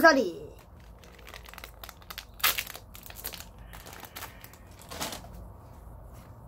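Cards rustle and flick as they are handled.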